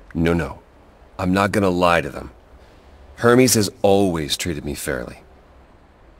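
A man speaks calmly and firmly.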